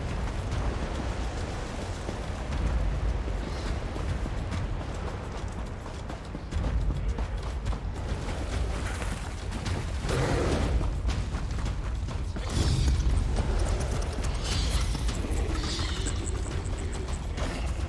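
Footsteps patter on soft ground.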